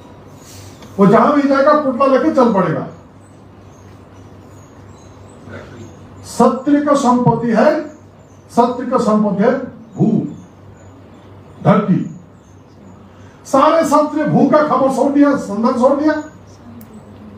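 A man speaks forcefully into a microphone, heard through loudspeakers in a reverberant hall, with pauses between phrases.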